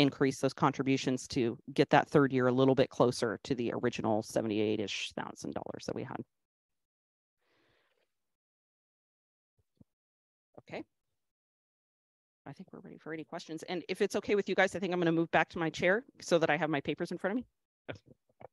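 An adult speaks calmly through a microphone.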